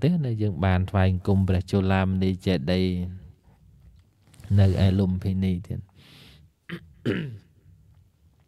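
A man speaks through a microphone in a slow, chanting voice.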